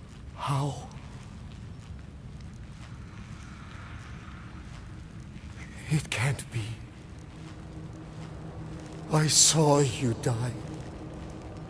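An elderly man speaks in shocked disbelief.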